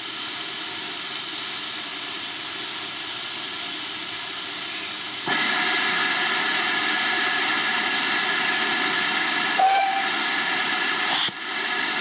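A steam train chugs past at a distance.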